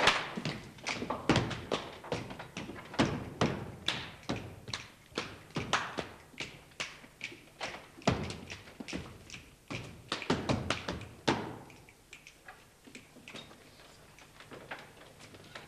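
Footsteps knock sharply on hollow wooden boards in an echoing hall.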